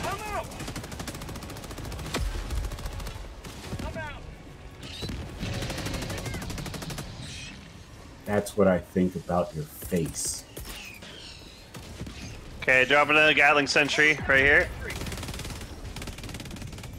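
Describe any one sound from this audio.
Gunfire rattles and explosions boom.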